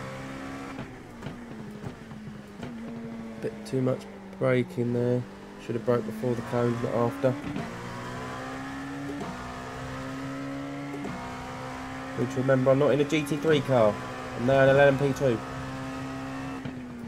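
A race car engine hums steadily and shifts pitch through the gears.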